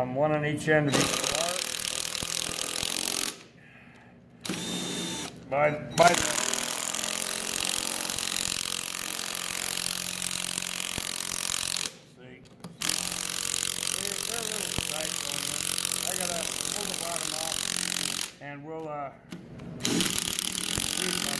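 An impact driver rattles loudly as it drives bolts, stopping and starting.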